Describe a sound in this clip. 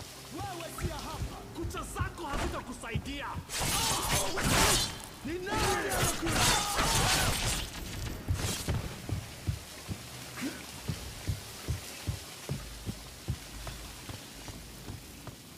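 Footsteps run on wooden planks.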